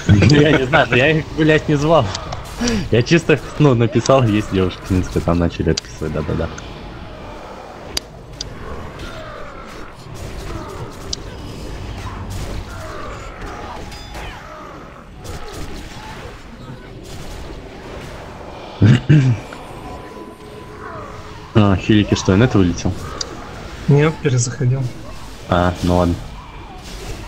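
Spells crackle and whoosh in a fantasy battle.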